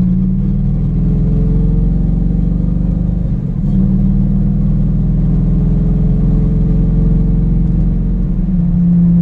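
A car engine hums steadily from inside the car, loud and low.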